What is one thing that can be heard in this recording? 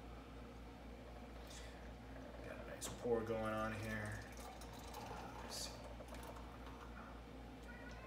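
Beer pours from a can into a glass, splashing and fizzing.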